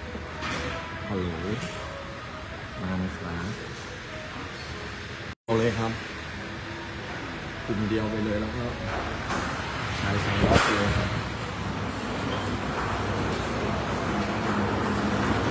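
A young man talks with animation, close to a phone microphone.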